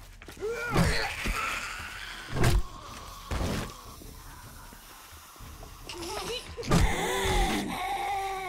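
A club thuds heavily into a body.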